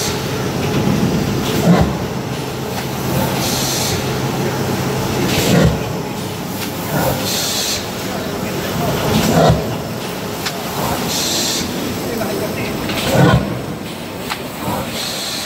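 A large machine hums and rumbles steadily.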